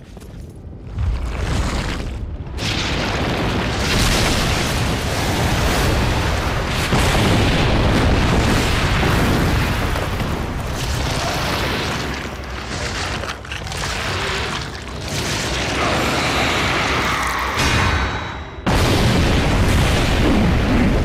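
A huge monster roars loudly.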